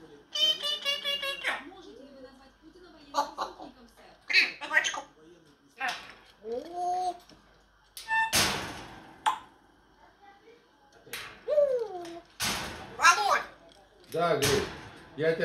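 A parrot whistles and squawks close by.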